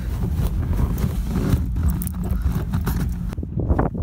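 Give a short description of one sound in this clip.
A hand rubs across a padded dashboard.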